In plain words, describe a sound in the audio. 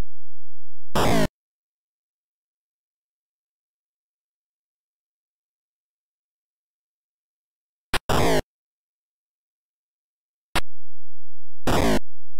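Harsh, buzzy retro video game sound effects crunch in short bursts as fighters trade blows.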